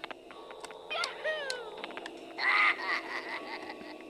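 Bright, bouncy video game sound effects chirp as a cartoon character jumps and lands.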